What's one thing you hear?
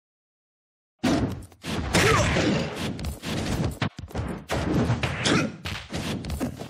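Quick whooshing dashes and thuds sound in rapid bursts.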